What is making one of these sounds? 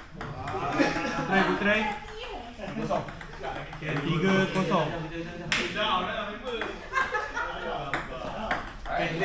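Young men talk and shout excitedly nearby.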